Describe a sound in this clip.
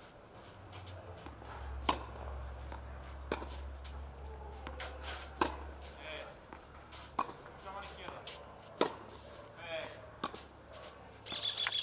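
A tennis ball bounces on a clay court.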